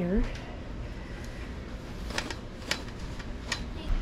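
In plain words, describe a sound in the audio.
Clothes rustle as they are handled on a drying rack.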